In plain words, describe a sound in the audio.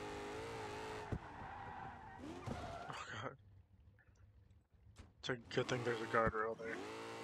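A car engine roars and revs loudly.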